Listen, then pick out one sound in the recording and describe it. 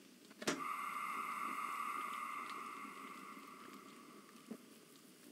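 A steam locomotive whistle blows loudly and slowly fades.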